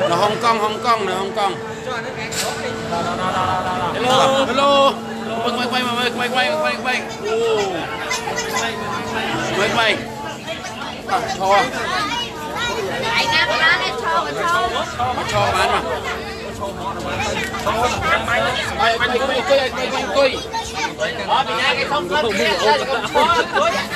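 A crowd of people chatters all around.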